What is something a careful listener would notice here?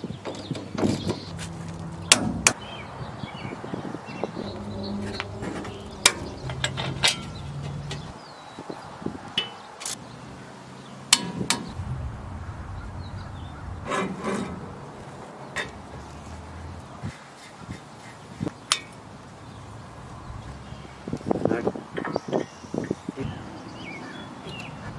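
Metal tools clink and knock against car parts.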